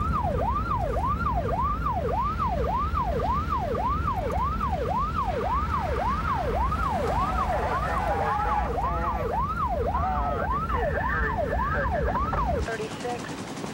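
A car engine roars as it races along.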